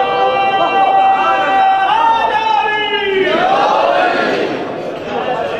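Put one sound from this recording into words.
A man chants loudly and with feeling into a microphone, in a reverberant hall.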